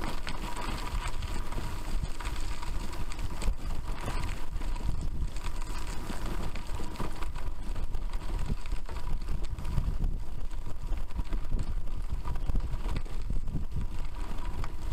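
Wind buffets loudly against the microphone outdoors.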